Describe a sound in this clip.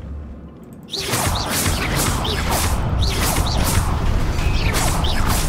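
A magic spell crackles and shimmers loudly.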